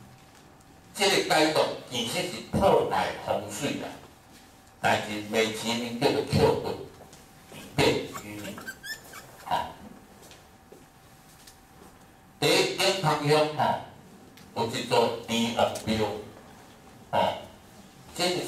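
An elderly man speaks calmly through a microphone, with pauses between phrases.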